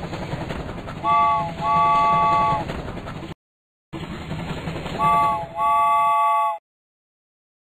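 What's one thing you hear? A toy train chugs along.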